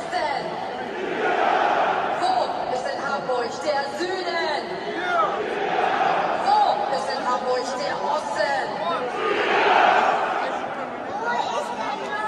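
A crowd cheers in bursts.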